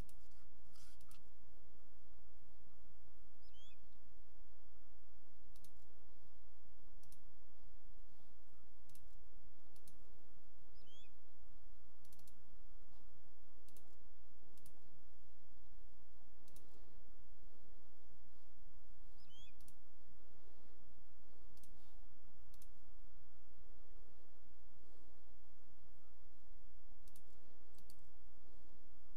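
Soft menu clicks sound now and then.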